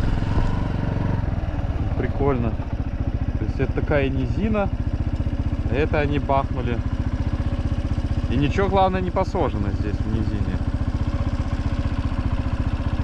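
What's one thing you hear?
A motorcycle engine idles nearby with a steady low putter.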